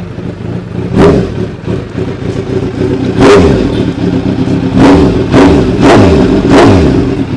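A motorcycle engine revs loudly in repeated bursts.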